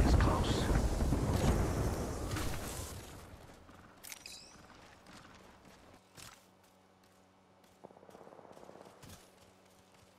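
Footsteps run quickly across grass.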